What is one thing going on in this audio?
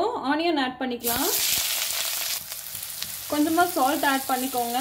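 Chopped onions drop into hot oil and sizzle loudly.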